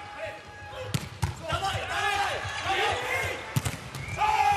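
A volleyball is struck hard with sharp smacks.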